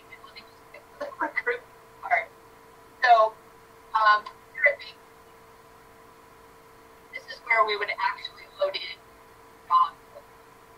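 A young man speaks calmly through an online call, in short bursts.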